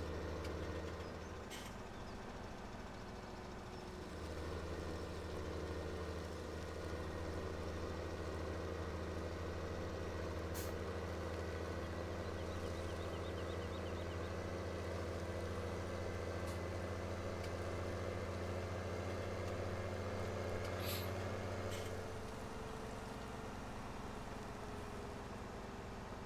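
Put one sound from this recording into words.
A tractor engine hums steadily as it drives along, louder while speeding up.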